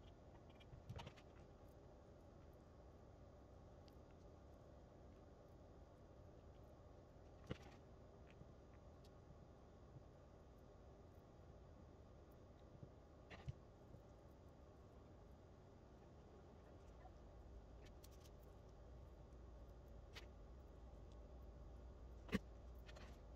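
Hard objects knock softly against a tabletop now and then.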